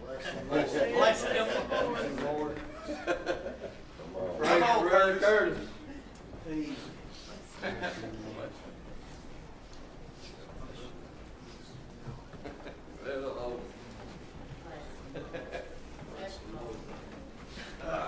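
Several men and women chat at once in a room with some echo.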